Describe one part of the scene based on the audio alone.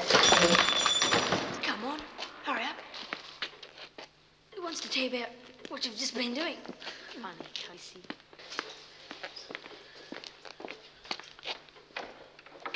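Footsteps knock on a hard floor.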